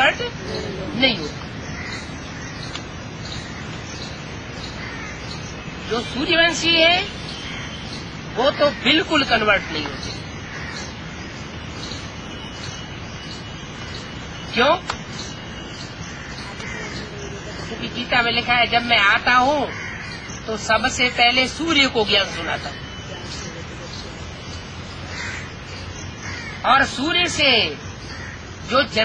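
An elderly man speaks close by in bursts, with pauses between them.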